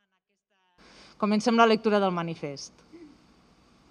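A woman speaks calmly into a microphone outdoors.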